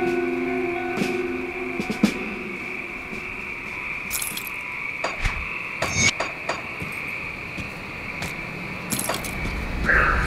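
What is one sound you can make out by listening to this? Short game interface clicks tick now and then.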